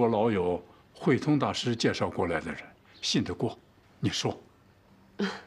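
An older man speaks calmly and seriously.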